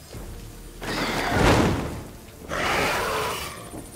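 A creature lets out a loud, rasping screech.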